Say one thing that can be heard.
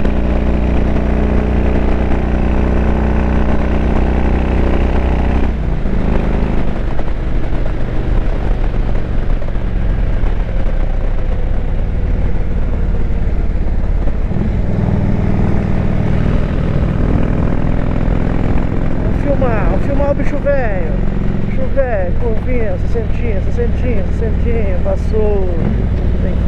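A motorcycle engine drones steadily at high speed, rising and falling in pitch.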